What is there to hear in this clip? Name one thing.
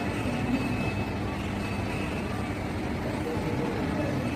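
An escalator hums steadily.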